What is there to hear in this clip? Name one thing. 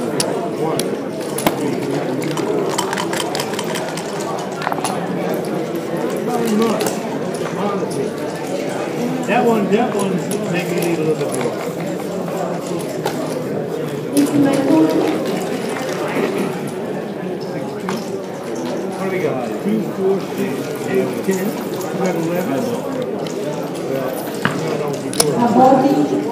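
Plastic checkers click against a wooden board.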